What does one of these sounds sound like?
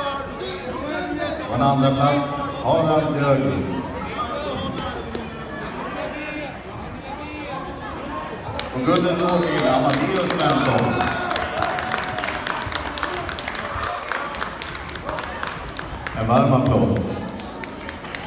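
Spectators shout encouragement in a large echoing hall.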